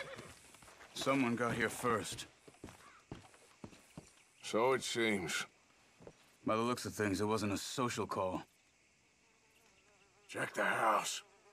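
A man speaks in a low, gruff voice nearby.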